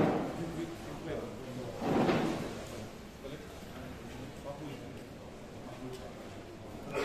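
Men and women chatter quietly nearby.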